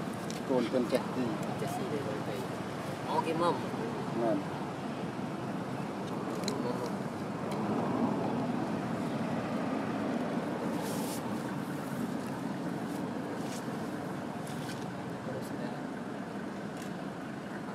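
A monkey chews food close by.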